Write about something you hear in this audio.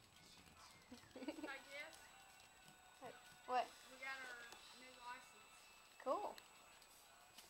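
Small puppies yip and whine playfully.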